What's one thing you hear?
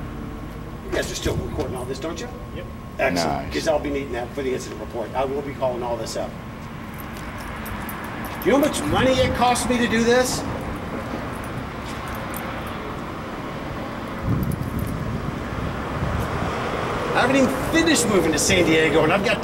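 A man speaks in short phrases close by.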